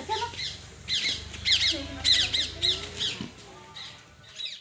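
Puppies whine and yelp with high, squeaky cries.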